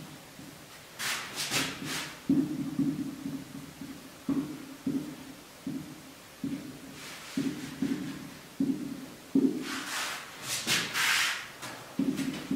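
A marker squeaks on a whiteboard in short strokes.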